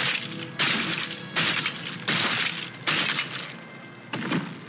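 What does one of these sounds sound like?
Short game clicks and chimes sound in quick succession.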